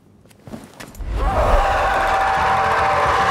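A monstrous creature growls and roars loudly.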